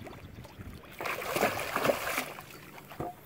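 A large fish thrashes and splashes at the water's surface close by.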